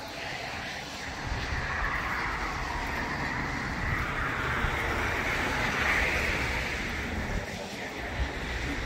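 Car tyres hiss on a wet street nearby.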